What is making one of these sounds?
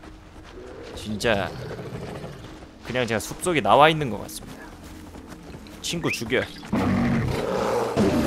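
A bear growls and snarls close by.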